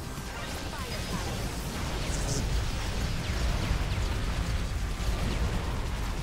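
Video game explosions and laser blasts crackle rapidly.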